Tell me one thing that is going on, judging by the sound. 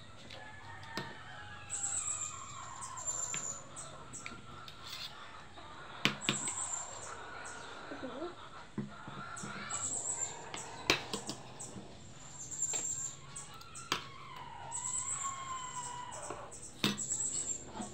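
A fork clinks against a plate.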